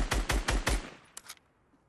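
A burst of rapid gunshots rings out.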